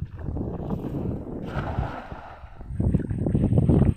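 A cast net splashes onto the water.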